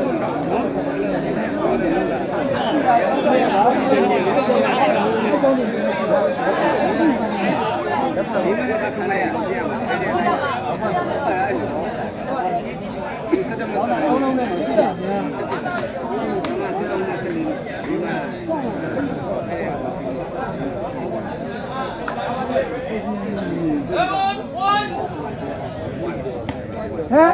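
A large outdoor crowd chatters and shouts loudly.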